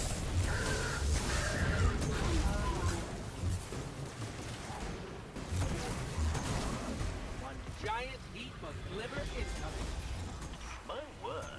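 Electric blasts crackle and boom in a game.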